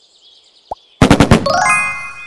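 Bright game chimes ring out in a quick run.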